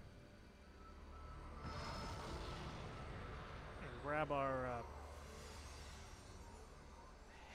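A magical whooshing rush swells and fades.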